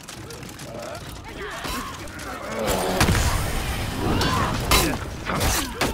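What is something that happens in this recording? A crowd of soldiers shouts during battle.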